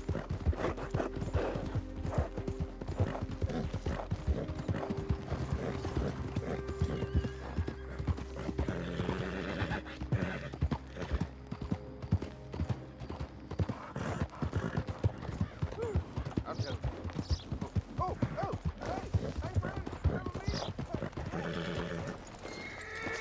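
A horse's hooves thud steadily on a dirt road.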